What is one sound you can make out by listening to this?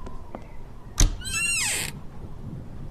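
A cabinet door creaks open.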